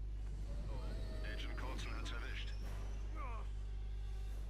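A jet engine roars past overhead.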